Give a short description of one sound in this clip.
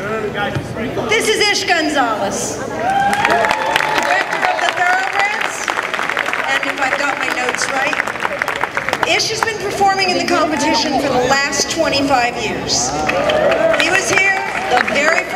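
A woman speaks warmly into a microphone over a loudspeaker.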